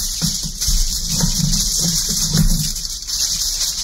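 Scissors snip through crinkling foil.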